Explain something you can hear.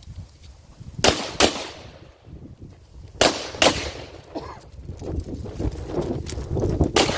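A pistol fires several sharp shots outdoors.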